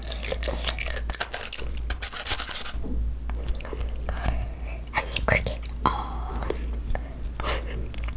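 A spoon scrapes and stirs sticky sauce in a paper bowl.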